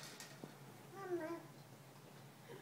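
A baby squeals briefly.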